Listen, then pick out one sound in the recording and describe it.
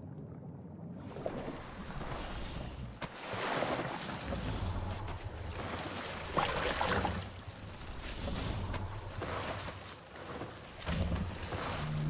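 Water gently laps and splashes against a rock outdoors.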